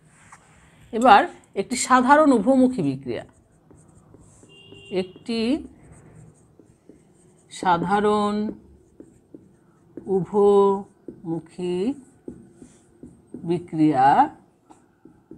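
A woman speaks calmly and clearly, close by, pausing between phrases.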